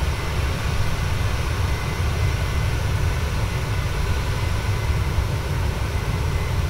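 Jet engines roar steadily with a deep, constant rumble.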